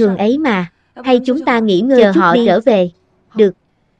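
A second young woman answers in a gentle voice, close by.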